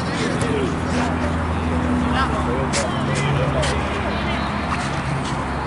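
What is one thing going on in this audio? Young men shout and call out across an outdoor pitch.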